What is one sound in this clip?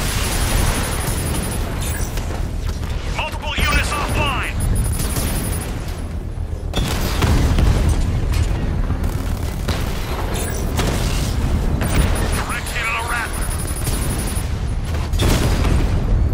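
Cannon shots and explosions boom repeatedly.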